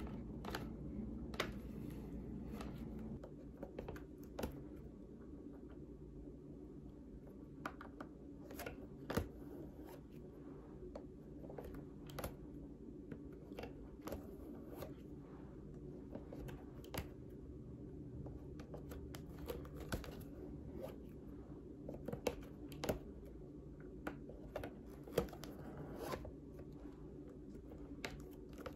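A needle taps against leather now and then.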